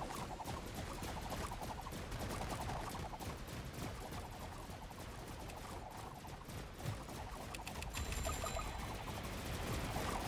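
Rapid gunfire crackles without a break.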